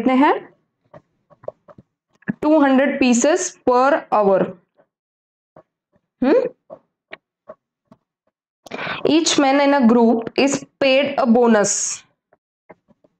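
A young woman speaks calmly and clearly into a close microphone, pausing between phrases.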